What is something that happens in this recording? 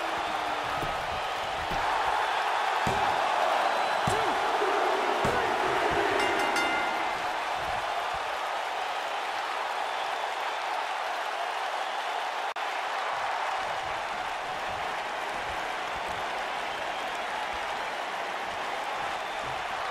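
A large crowd cheers and roars loudly throughout.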